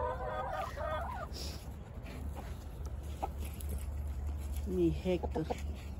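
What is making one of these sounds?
Hens cluck softly.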